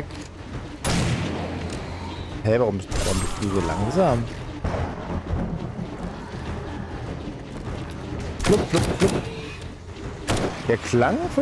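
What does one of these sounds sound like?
Loud gunshots fire in short bursts.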